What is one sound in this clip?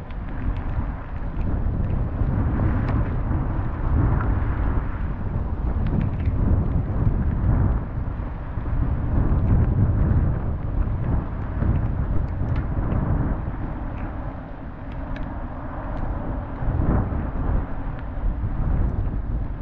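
Strong wind roars and buffets outdoors.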